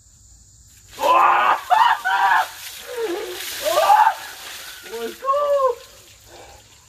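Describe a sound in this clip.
A man gasps and shouts loudly up close.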